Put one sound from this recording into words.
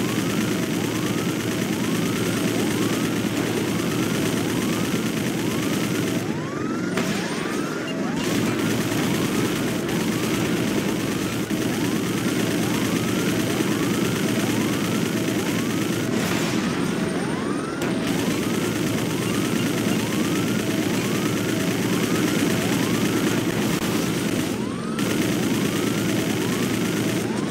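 A helicopter's rotor thrums.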